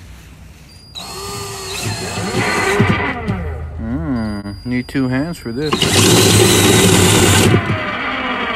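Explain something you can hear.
A power drill whirs and revs as it bores through plastic.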